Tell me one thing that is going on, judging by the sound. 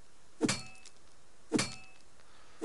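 A pickaxe strikes rock.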